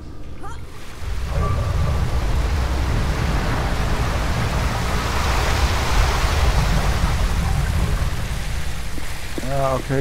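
Water rushes and churns with a deep rumble.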